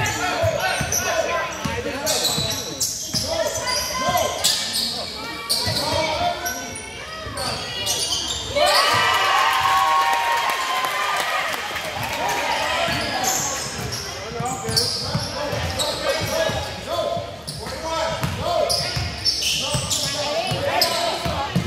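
A basketball bounces on the court with thuds.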